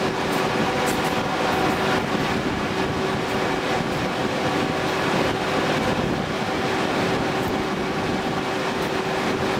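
A train rumbles along the tracks at speed, wheels clattering over rail joints.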